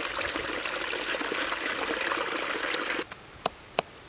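Water gushes and splashes steadily.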